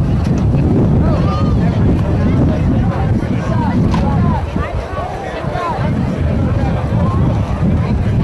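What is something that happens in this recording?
Young men on a sideline shout and call out outdoors.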